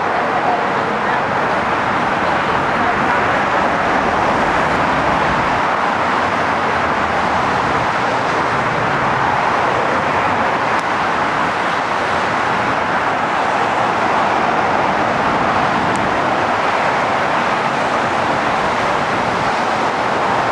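Traffic rushes by steadily below.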